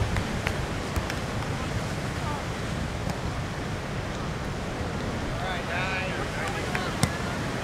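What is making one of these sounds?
Waves break and wash onto the shore outdoors in wind.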